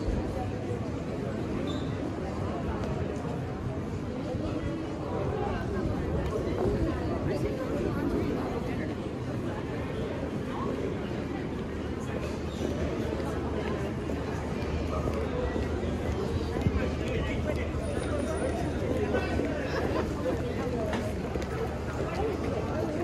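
A crowd of people chat and murmur on a busy street outdoors.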